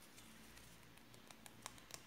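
Paper crinkles close up.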